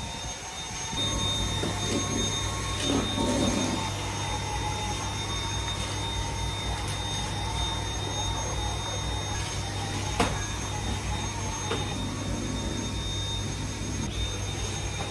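A cordless vacuum cleaner hums steadily.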